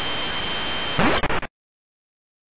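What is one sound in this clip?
An electronic explosion crashes loudly.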